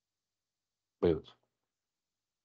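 A man says a brief word through an online call.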